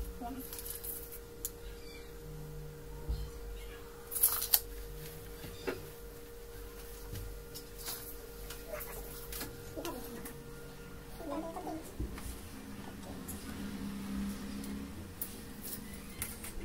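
A metal measuring tape rattles and snaps back.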